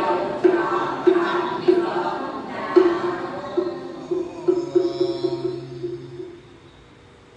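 A group of women and men chant together in unison in a hall.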